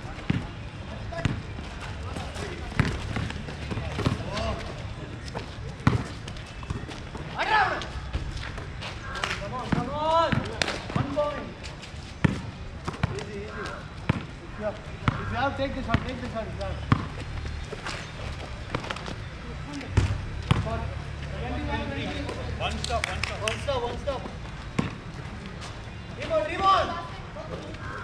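Sneakers scuff on the concrete court.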